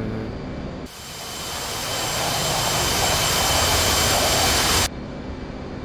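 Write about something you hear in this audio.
A jet roars loudly past, then cuts off.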